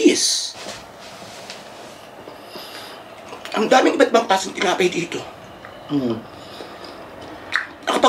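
A man chews food noisily.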